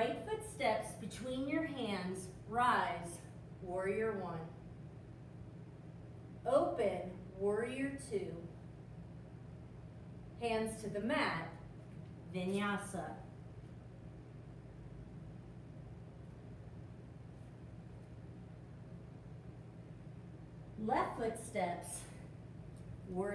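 A woman speaks calmly, giving instructions, in a room with a slight echo.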